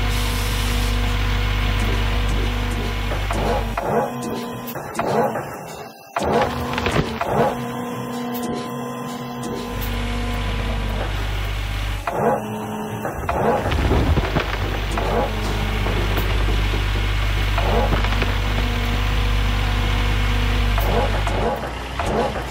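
A diesel engine hums and drones steadily.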